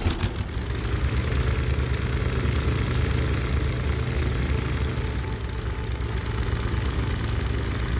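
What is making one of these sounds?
Water splashes and churns behind a moving boat.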